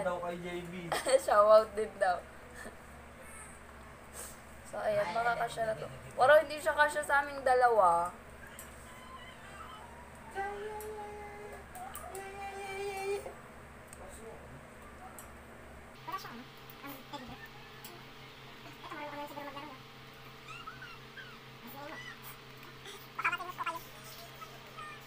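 A teenage girl speaks with animation close by.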